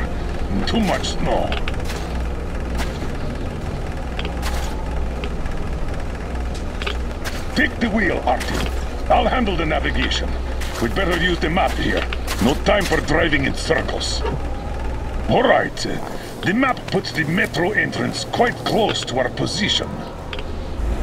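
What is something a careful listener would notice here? A man speaks calmly, muffled through a gas mask.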